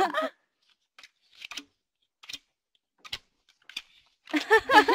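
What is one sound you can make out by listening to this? Playing cards slap and shuffle on a table.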